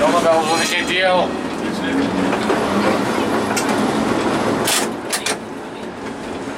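Tram wheels clatter over track switches.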